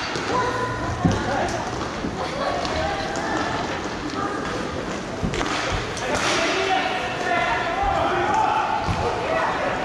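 Ball hockey sticks clack and scrape on a hard floor in a large echoing hall.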